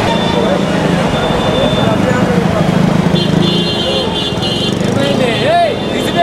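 Motorcycles and traffic rumble past on a busy street.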